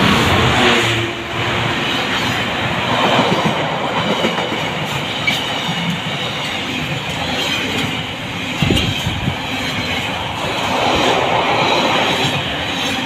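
Freight wagons rattle and clatter over the rails.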